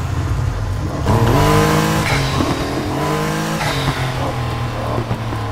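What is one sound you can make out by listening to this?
A sports car engine revs up and down sharply.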